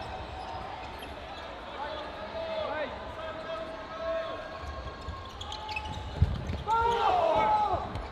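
A ball thuds as players throw and hit it.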